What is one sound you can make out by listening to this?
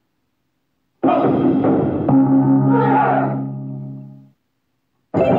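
A short triumphant fanfare plays.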